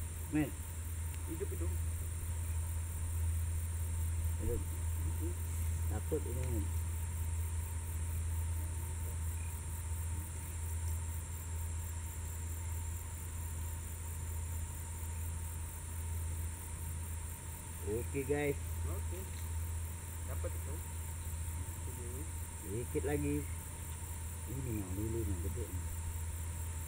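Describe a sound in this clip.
A man talks casually nearby in short bursts.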